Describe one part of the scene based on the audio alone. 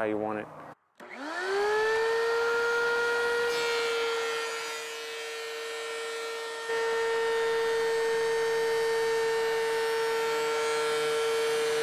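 A power planer's motor spins up and runs with a steady whine.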